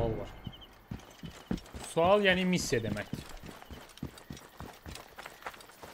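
Quick footsteps run over dirt and grass.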